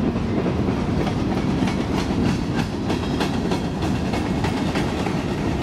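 Freight car wheels clack rhythmically over rail joints.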